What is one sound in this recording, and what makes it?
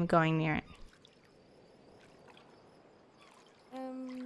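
Water splashes softly with swimming strokes.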